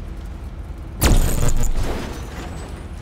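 An electric stun gun crackles and buzzes loudly.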